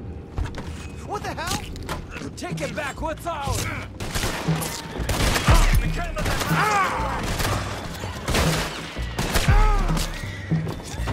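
A man shouts angrily nearby.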